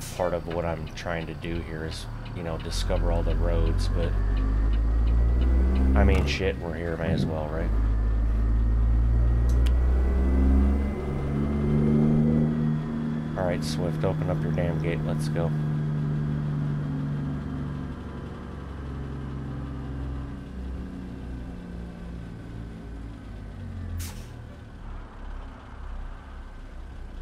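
A heavy truck engine rumbles and drones as it drives along a road.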